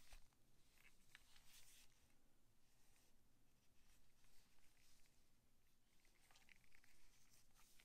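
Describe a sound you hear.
Gloved hands rub and click softly against a plastic game controller.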